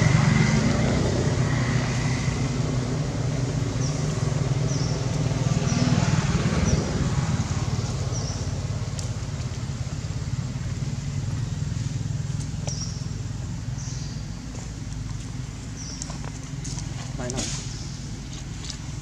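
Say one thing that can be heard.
Dry leaves rustle and crunch as monkeys move about on them.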